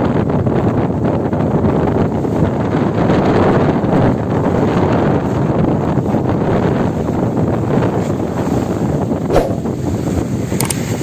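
Wind blows outdoors on open water.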